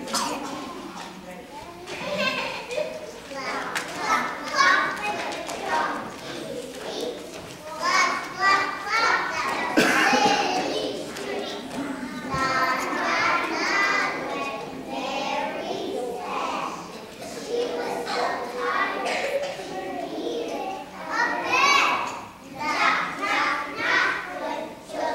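A group of young children sings together in a large echoing hall.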